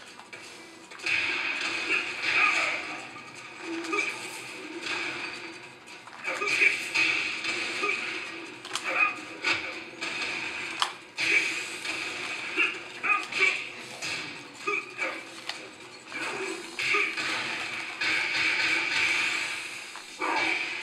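Punches and kicks land with sharp, heavy thuds in a fighting game.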